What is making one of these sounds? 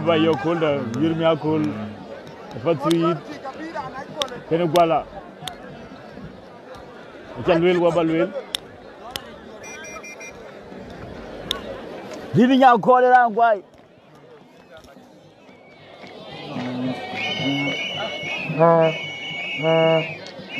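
A large crowd murmurs and cheers in the distance outdoors.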